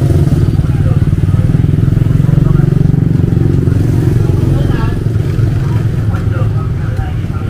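Motorbike engines hum past.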